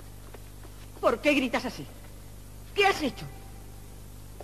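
A young woman speaks urgently close by.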